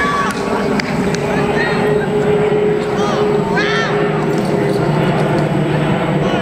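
A jet airliner roars steadily overhead as it climbs.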